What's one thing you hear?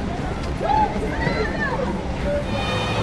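A crowd shouts and runs outdoors.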